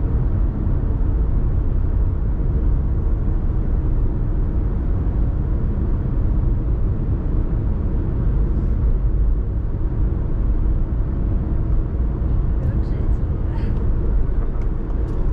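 Tyres roar steadily on a road, heard from inside a moving car.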